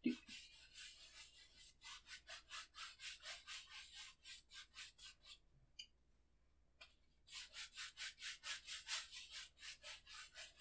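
A paintbrush scrubs quickly across a canvas in short, rhythmic strokes.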